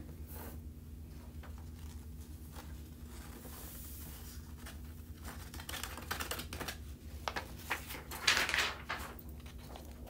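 A sheet of paper rustles as it is lifted and moved aside.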